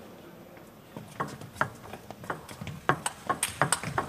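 A ping pong ball clicks back and forth between paddles and the table in a quick rally.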